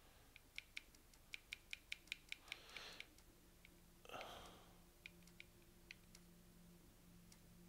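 Short menu clicks tick in quick bursts.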